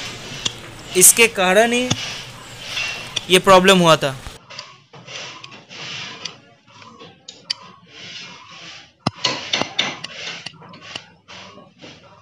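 A small metal tool scrapes against a metal part.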